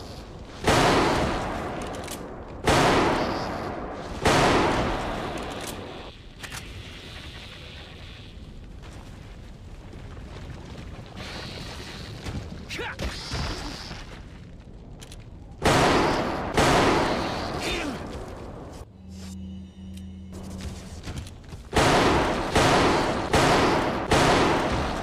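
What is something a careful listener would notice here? Loud rifle shots ring out one after another, each with a booming echo.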